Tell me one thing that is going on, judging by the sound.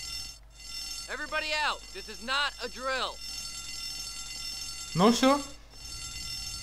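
A man calls out urgently.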